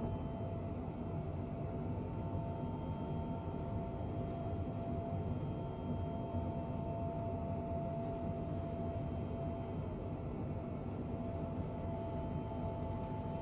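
Jet engines hum steadily in a low, even drone.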